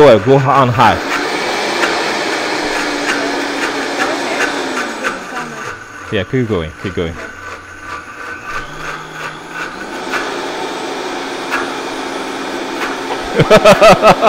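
A blender whirs steadily, its motor straining as it churns.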